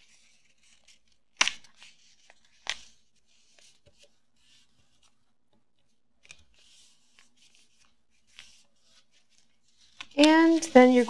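Stiff paper rustles and creases as it is folded by hand.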